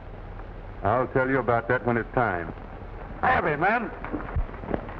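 A man speaks firmly up close.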